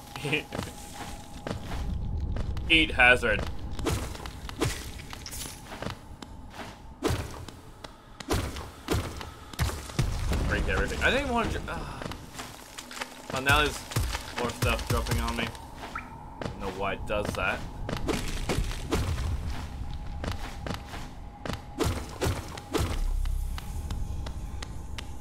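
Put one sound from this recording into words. Light footsteps tap on hard ground.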